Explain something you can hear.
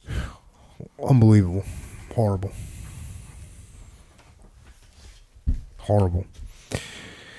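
A man speaks into a microphone in a low, calm voice, in short bursts.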